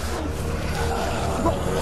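A zombie groans hoarsely.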